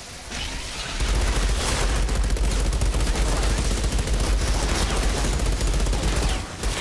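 Rapid gunfire blasts loudly and without a break.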